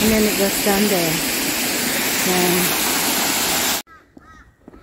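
Water rushes and splashes over rocks.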